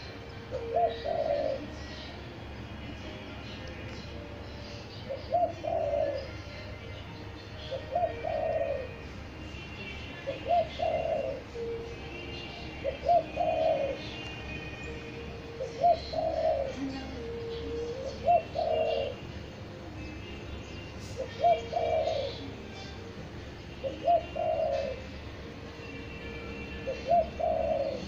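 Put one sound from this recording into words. A dove coos close by in a repeated low phrase.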